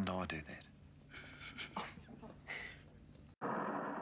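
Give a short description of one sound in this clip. Young girls giggle.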